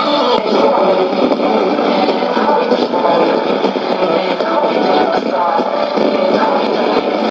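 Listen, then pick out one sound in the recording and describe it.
Static crackles and hisses from a radio loudspeaker.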